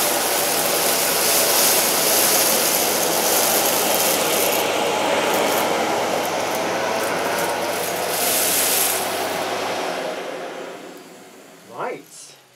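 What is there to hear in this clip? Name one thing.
A vacuum cleaner roars loudly over carpet, then winds down.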